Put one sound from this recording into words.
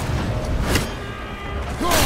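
Metal clanks and sparks crackle as an object breaks.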